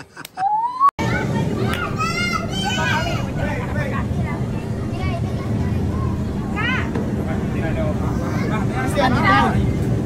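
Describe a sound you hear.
A crowd of children and adults chatter in a busy room.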